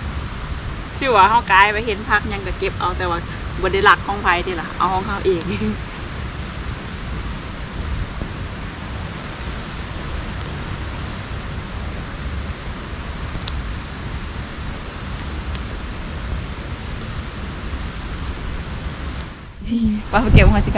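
A young woman talks cheerfully close by.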